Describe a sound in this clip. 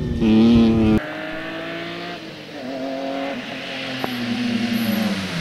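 A rally car engine revs in the distance as it approaches.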